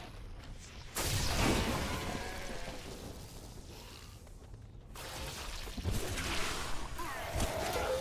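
Lightning zaps with a sharp crack.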